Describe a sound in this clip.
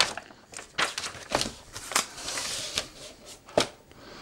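A box is set down on paper with a soft knock.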